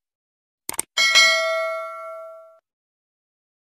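A small bell rings once and slowly fades.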